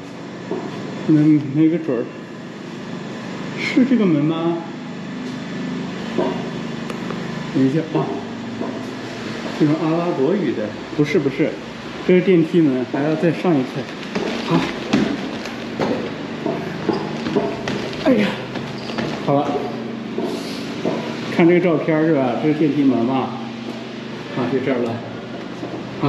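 A man speaks calmly close by, with pauses.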